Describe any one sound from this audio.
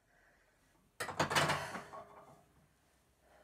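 A metal barbell clanks down onto its rack.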